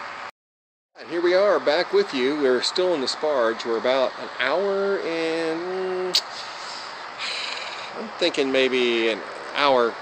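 A man speaks close up, calmly and conversationally.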